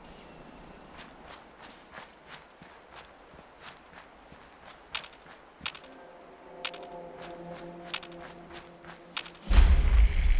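Footsteps crunch steadily over dry ground.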